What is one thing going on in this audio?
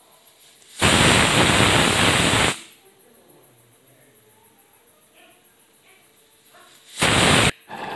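A pressure cooker whistle hisses loudly in sharp bursts.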